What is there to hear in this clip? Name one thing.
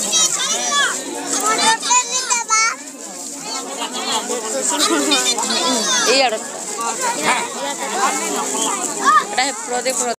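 Children chatter and call out close by, with many high voices overlapping.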